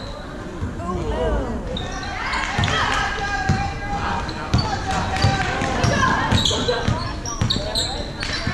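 Spectators chatter and shout in a large echoing gym.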